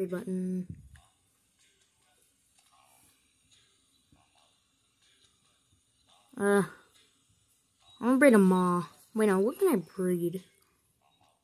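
A tablet game plays short musical sounds.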